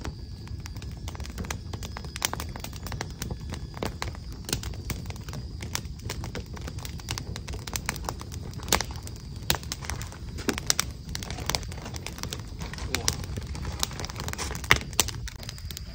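A pen scratches and taps on paper close by.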